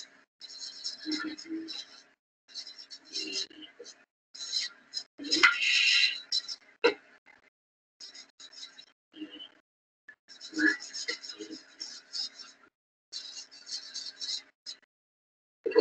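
A marker squeaks across paper in short strokes.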